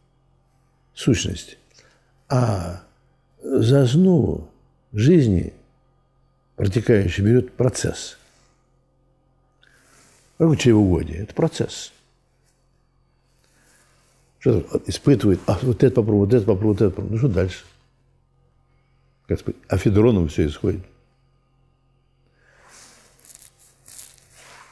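An elderly man speaks calmly and slowly, in bursts with pauses, close to a microphone.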